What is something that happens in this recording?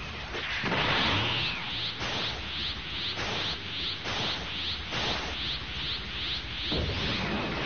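A rapid series of sharp hits rattles in a steady rhythm.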